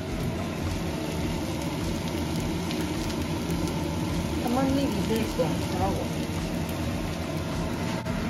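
Fried rice sizzles in a pan.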